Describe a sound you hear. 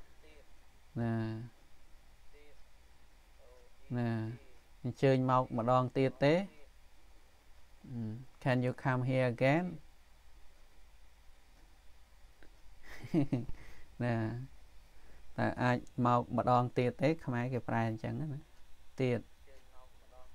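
A man speaks slowly and clearly through a microphone, reading out in short bursts with pauses.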